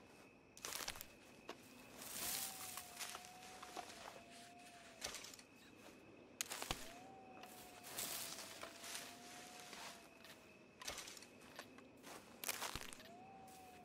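Leaves rustle as plants are plucked from grass.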